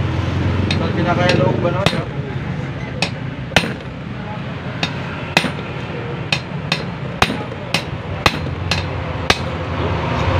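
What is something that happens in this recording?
A hammer taps sharply on metal in a steady series of blows.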